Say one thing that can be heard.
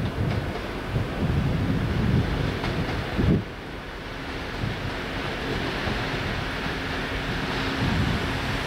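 A train approaches along the tracks with a low, steady rumble.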